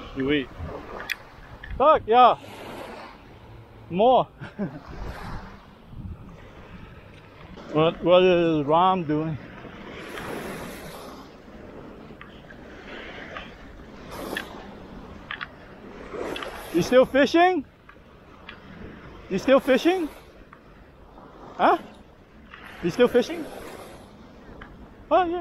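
Small waves wash gently onto the sand.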